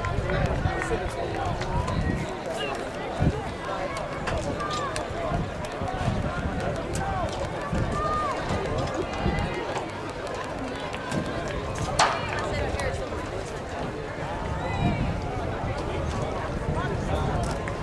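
A crowd of young women and girls chatter and call out nearby, outdoors.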